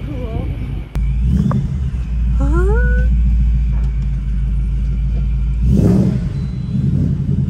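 A car engine rumbles loudly, revving up.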